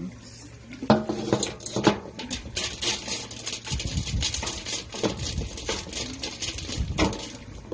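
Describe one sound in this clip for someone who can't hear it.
Crumbled soil and dry bits rustle and patter close by.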